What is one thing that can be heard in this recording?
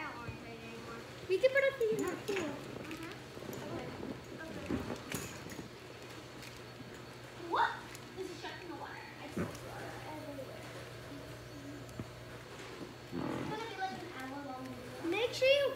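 Young women talk and laugh nearby.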